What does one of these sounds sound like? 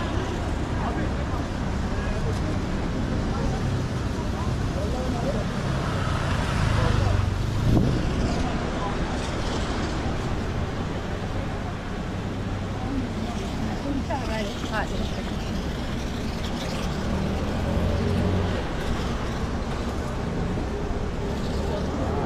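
A busy street crowd murmurs outdoors.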